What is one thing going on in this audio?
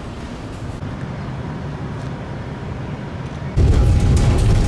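A tram hums as it approaches slowly.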